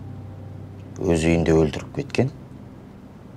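A man speaks in a low voice nearby.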